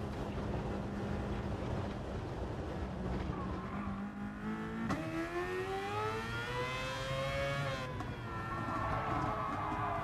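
A racing car engine roars and revs up as it accelerates.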